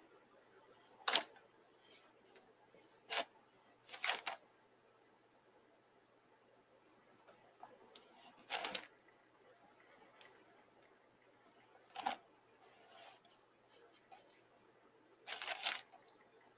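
A felt-tip marker scratches and squeaks in short strokes across paper.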